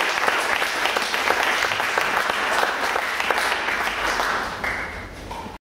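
An audience claps in a hall, and the applause fades near the end.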